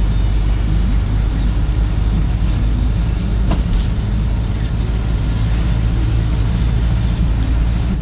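A vehicle's engine rumbles steadily as it drives along a road.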